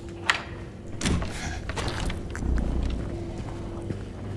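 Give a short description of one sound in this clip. A metal door creaks open.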